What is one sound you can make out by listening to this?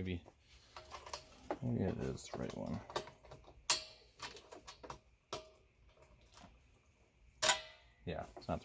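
A metal hose fitting clicks and clacks as it is connected.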